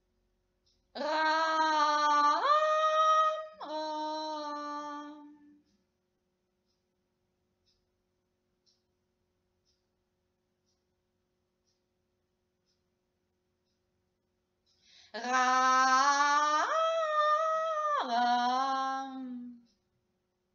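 A young woman sings long, sustained notes close by, her voice leaping up and down in pitch.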